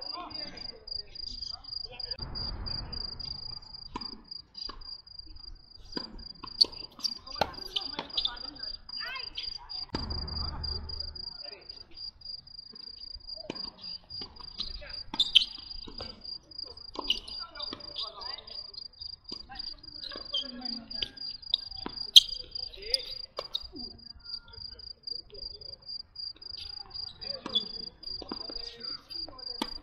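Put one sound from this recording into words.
Tennis rackets strike a ball with sharp pops on an outdoor court.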